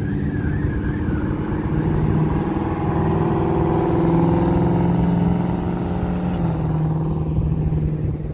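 A car accelerates away along a road and fades into the distance.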